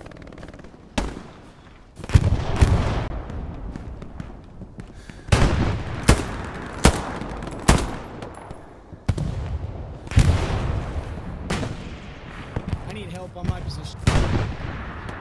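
Loud rifle shots crack and echo outdoors, one after another.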